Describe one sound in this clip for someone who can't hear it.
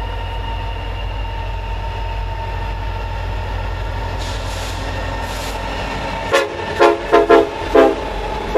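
A diesel freight locomotive rumbles as it approaches.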